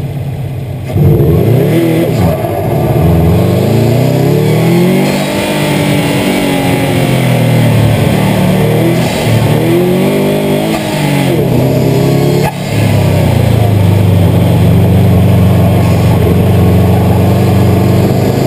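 A car engine roars and revs up and down as the car accelerates and brakes.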